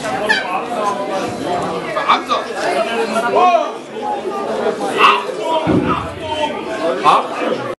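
A crowd chatters and cheers loudly in an echoing hall.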